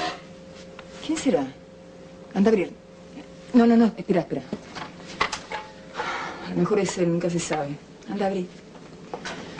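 A woman speaks tensely and cries out nearby.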